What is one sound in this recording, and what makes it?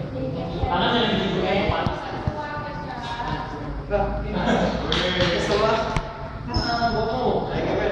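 Young men talk in an echoing hall.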